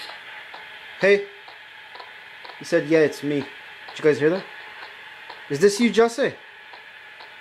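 A young child speaks in short bursts through a phone call.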